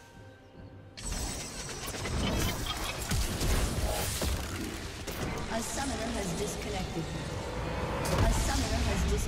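Video game combat clashes with bursts of spell effects.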